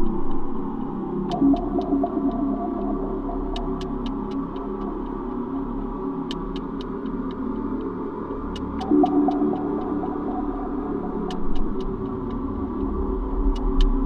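A glowing energy beam hums steadily.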